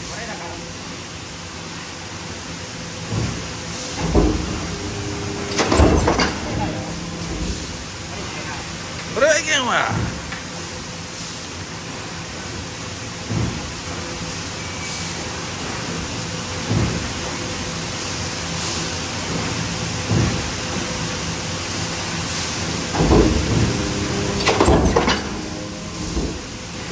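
Factory machinery hums steadily.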